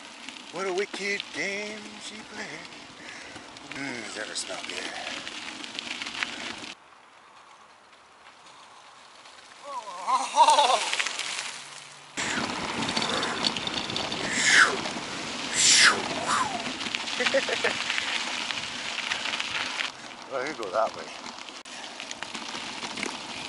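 Bicycle tyres crunch over a gravel trail.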